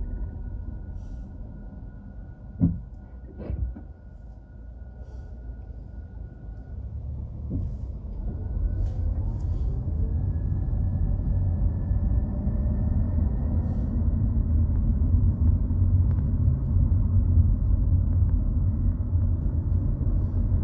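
A car engine idles quietly, then rumbles louder as the car pulls away and speeds up.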